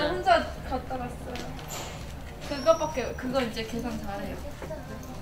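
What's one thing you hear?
A young woman speaks casually and close by.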